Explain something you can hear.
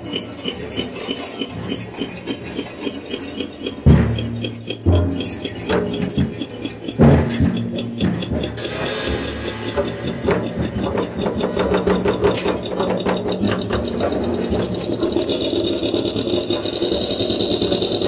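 Electronic keyboard music plays with a steady rhythm.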